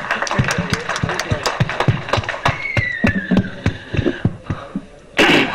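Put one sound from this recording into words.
A crowd claps rhythmically.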